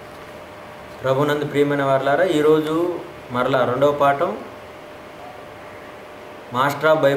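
A man speaks calmly and slowly, close by.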